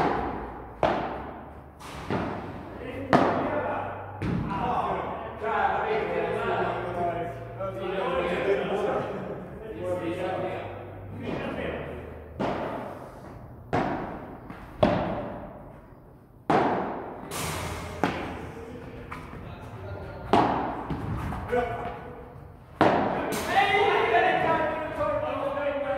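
Padel rackets hit a ball with sharp pops that echo around a large hall.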